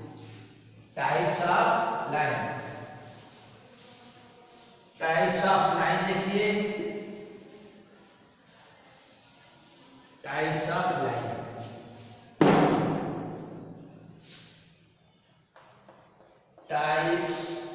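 An elderly man speaks calmly into a microphone in an echoing room, in short bursts with pauses.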